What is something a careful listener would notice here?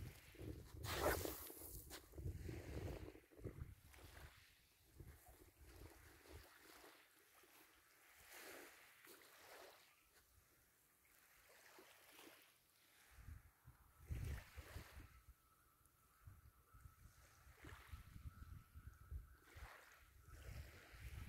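Wind gusts across an open shore.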